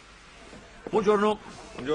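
A man speaks loudly up close.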